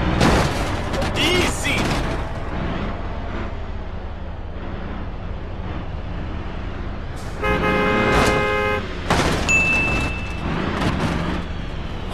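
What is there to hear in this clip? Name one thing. Heavy wheels thud over speed bumps.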